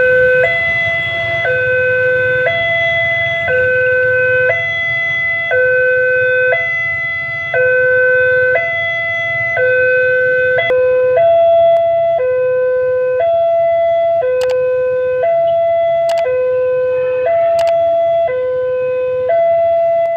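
A crossing bell rings loudly, alternating between two tones at a steady pace.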